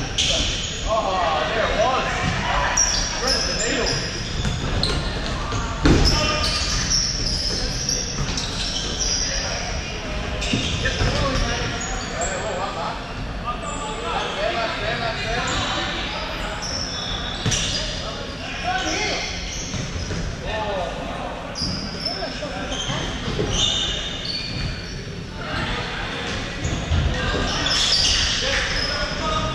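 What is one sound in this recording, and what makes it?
A ball thumps off a foot and bounces on a wooden floor.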